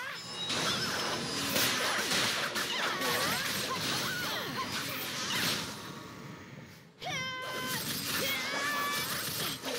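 Magic spells crackle and whoosh in a fierce battle.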